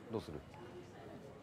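A young man asks a short question close by.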